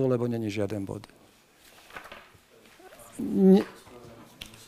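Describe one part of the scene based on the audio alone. An elderly man speaks firmly into a microphone.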